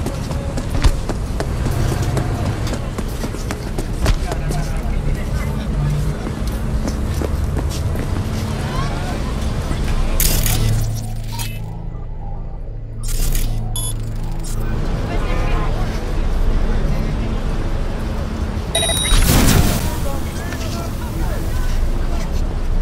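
Street traffic hums steadily in the background.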